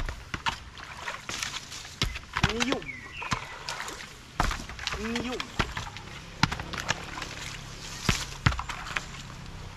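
Long poles splash and knock in the water.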